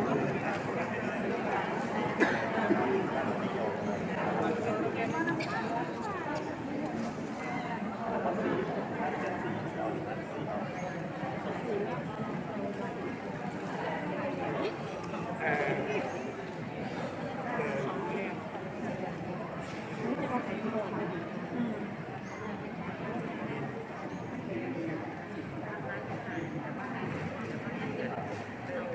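A crowd of men and women murmur and chat quietly all around in an echoing room.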